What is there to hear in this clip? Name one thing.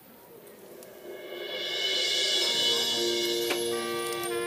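A marching band plays a loud, sustained brass chord in a large open stadium.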